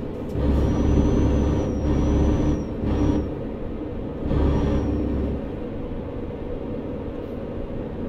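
A diesel truck engine drones while cruising, heard from inside the cab.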